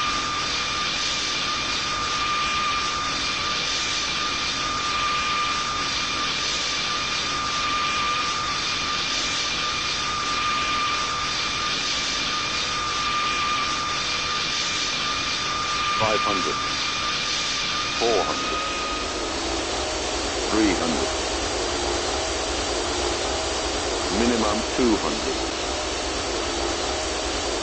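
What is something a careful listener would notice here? Jet engines roar steadily as an airliner flies low overhead.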